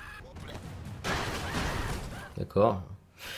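Explosions boom and crackle in a video game.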